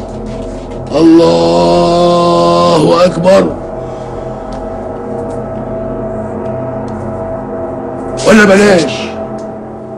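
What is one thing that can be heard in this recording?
An elderly man calls out loudly in a chanting voice.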